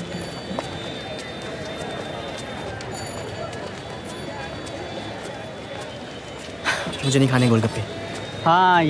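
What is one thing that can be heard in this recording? A crowd murmurs in a busy outdoor street.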